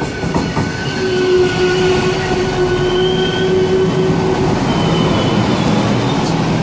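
Train wheels squeal on the rails as a train slows.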